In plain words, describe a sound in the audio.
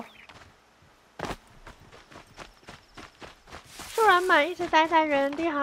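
Footsteps run quickly over dry dirt and rock.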